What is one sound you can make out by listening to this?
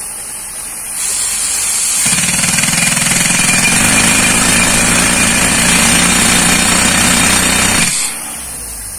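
A power tool drills loudly into stone.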